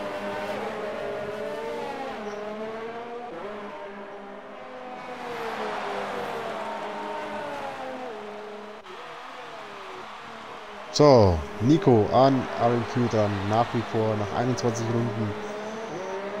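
Racing car engines whine at high revs, rising and falling in pitch.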